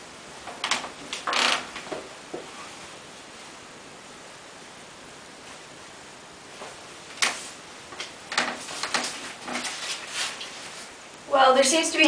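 Bedding rustles and swishes as it is thrown about.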